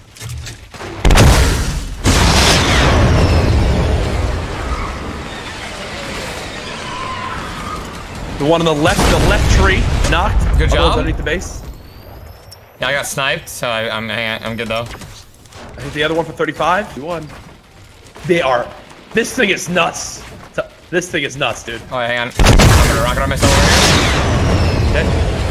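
Rockets whoosh and explode with loud booms.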